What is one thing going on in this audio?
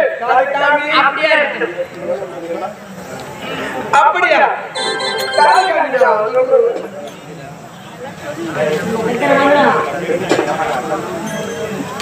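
A man speaks loudly and dramatically through a microphone, with a slight outdoor echo.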